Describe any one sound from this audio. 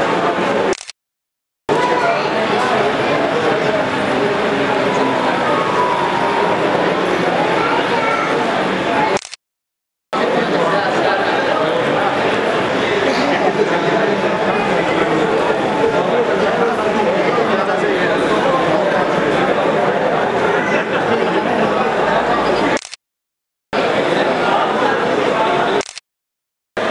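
A crowd of men talk over one another, close by and loud.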